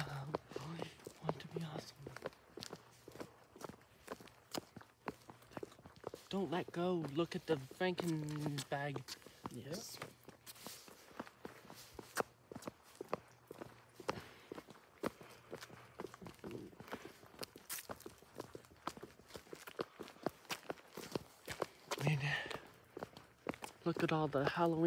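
Footsteps walk steadily on pavement outdoors.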